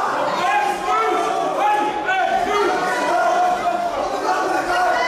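A crowd shouts and cheers loudly in a large echoing hall.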